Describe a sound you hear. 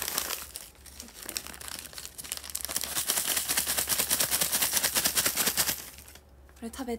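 A paper bag crinkles and rustles close to the microphone.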